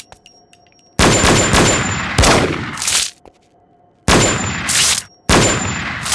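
A pistol fires loud shots in bursts, each followed by a ringing echo.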